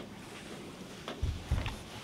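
A microphone thumps and rustles as it is handled.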